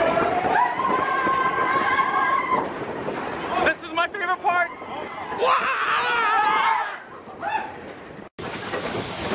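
A roller coaster rattles and rumbles along its track.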